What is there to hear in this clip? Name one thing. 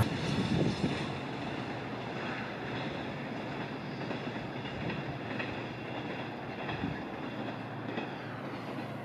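A freight train rumbles and clatters along the tracks into the distance.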